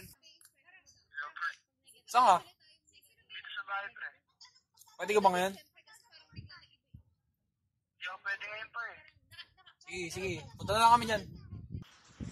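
A young man talks calmly on a phone.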